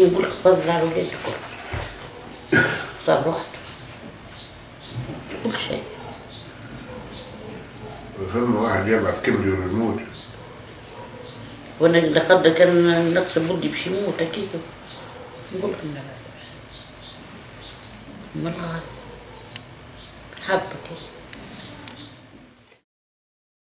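An elderly woman speaks with animation, close by.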